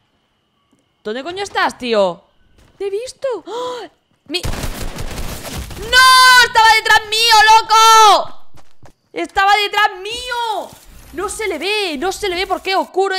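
A young woman shouts and cries out excitedly through a close microphone.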